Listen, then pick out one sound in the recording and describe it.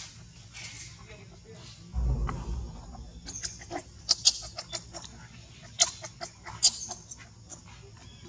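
A baby monkey squeaks faintly.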